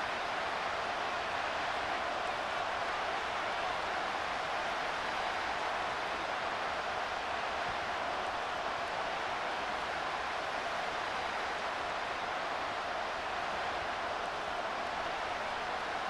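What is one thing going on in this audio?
A large stadium crowd roars steadily throughout.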